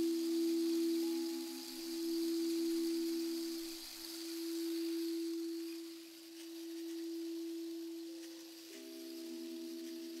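Crystal singing bowls ring in a steady, swelling hum.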